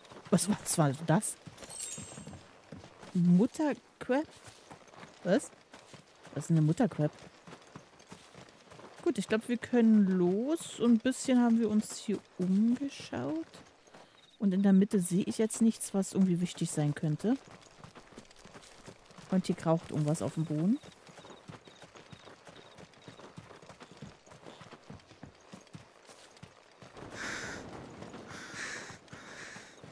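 Footsteps tread along a dirt path.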